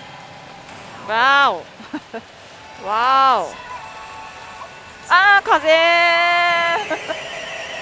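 A young woman exclaims with surprise into a close microphone.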